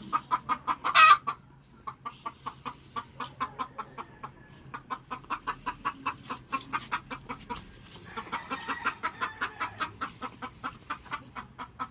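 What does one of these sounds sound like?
Chickens cluck rapidly and steadily close by.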